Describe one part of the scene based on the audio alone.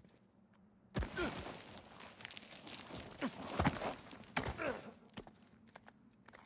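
Loose gravel hisses and rattles as someone slides down a slope.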